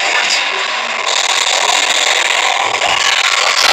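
An energy beam whooshes and crackles.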